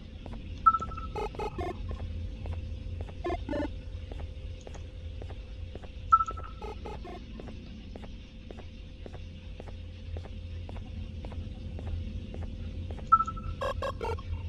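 A handheld detector beeps sharply now and then.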